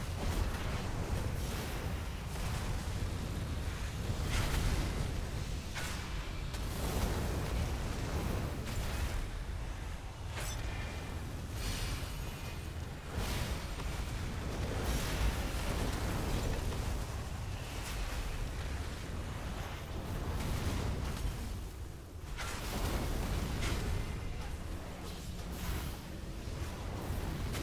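Magic blasts and explosions crackle and boom in a loud battle.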